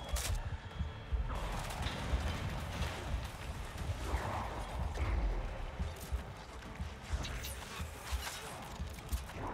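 Fires roar and crackle.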